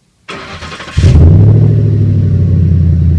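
A truck engine idles with a deep, loud rumble from the exhaust.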